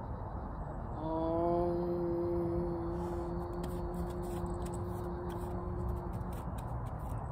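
A young woman chants a long, steady hum.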